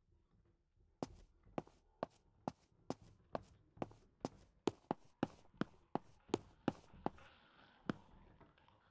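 Boots step in a steady walking rhythm.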